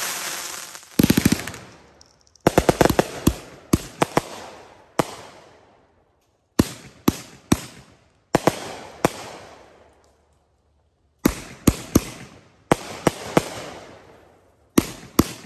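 Fireworks bang sharply in quick bursts.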